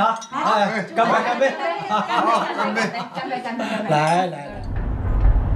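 Several adults talk and toast cheerfully at a distance.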